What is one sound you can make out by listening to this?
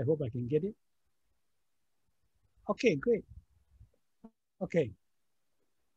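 A middle-aged man speaks calmly and close, as if through a computer microphone.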